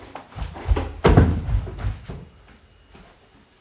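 Shoes thud as they drop onto the floor.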